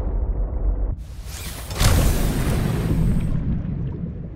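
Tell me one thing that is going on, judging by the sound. A hatch opens with a whoosh of water.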